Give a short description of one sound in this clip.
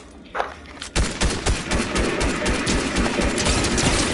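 Rapid gunshots fire in quick bursts.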